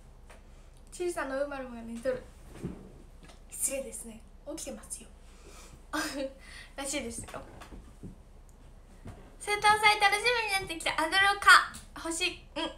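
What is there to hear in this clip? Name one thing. A young woman speaks cheerfully and close into a microphone.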